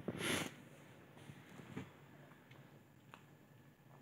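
A plastic bottle taps on a bedspread.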